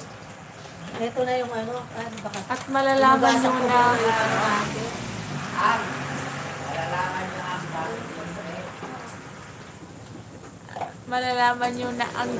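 A middle-aged woman talks casually nearby.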